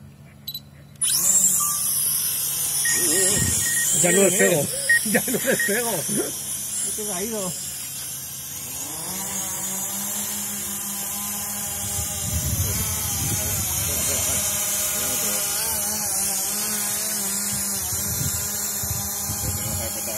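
Small drone propellers buzz with a high, steady whine, rising and falling in pitch as the drones fly.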